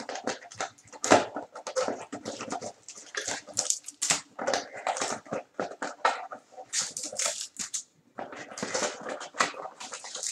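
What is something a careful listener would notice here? Card packs rustle and crinkle as they are pulled out.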